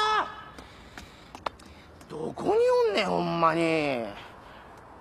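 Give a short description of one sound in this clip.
A man shouts out loudly, heard close by.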